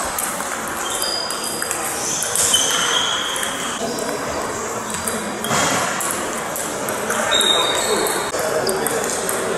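Sports shoes squeak on the hall floor.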